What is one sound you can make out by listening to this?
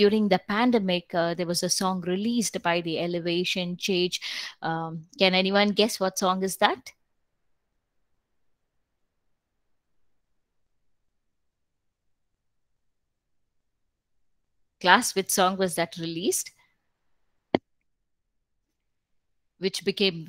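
A woman speaks calmly over an online call, pausing at times.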